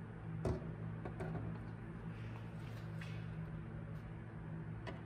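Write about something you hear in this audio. A plastic toy car body clicks and knocks as it is handled and lifted off.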